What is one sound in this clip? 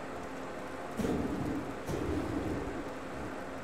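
A magic fire effect whooshes and crackles.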